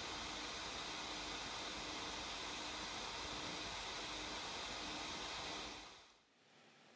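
A small computer fan whirs steadily and quietly.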